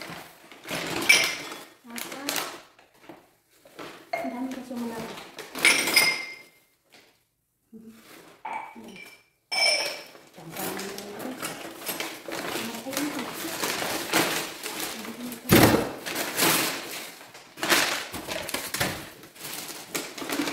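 A plastic bin bag rustles and crackles.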